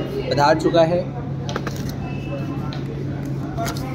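A cardboard box scrapes and thumps on a table.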